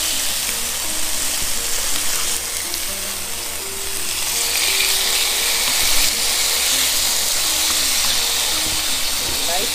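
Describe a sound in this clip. Metal tongs scrape and tap against a pan.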